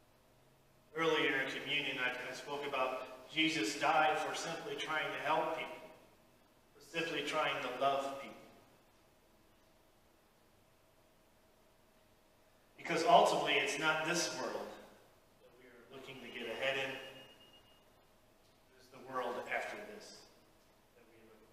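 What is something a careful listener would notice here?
A man speaks calmly into a microphone in an echoing hall, with pauses.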